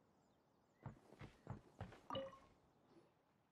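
Footsteps tap quickly on wooden boards.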